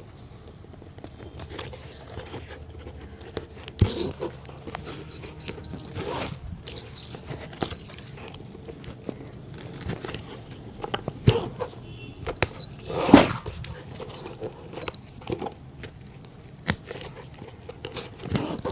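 Hands tap and knock against a shoe.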